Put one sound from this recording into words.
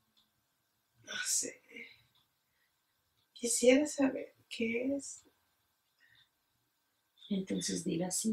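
A woman speaks quietly close by, in short bursts.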